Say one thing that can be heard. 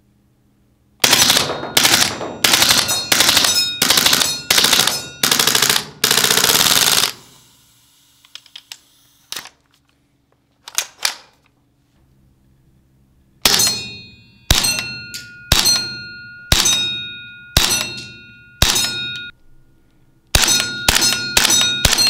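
A toy gun fires rapid bursts of sharp snapping shots.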